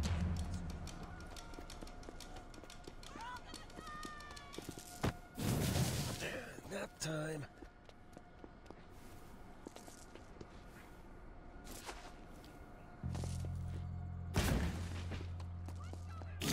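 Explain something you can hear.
Quick footsteps patter on pavement.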